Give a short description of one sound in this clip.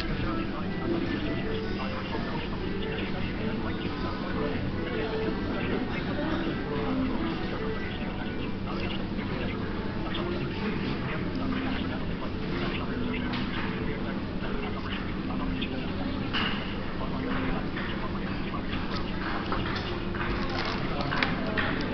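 A man speaks quietly close to the microphone.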